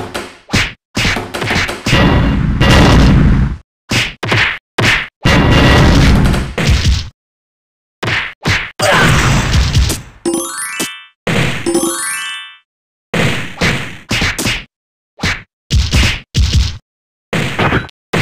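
Punches and kicks thud in quick bursts.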